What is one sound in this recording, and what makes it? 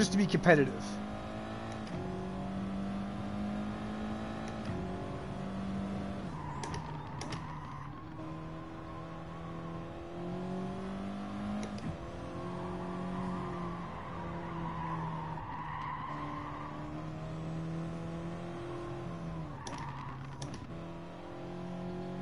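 A racing car engine roars steadily, its pitch rising and dropping with each gear change.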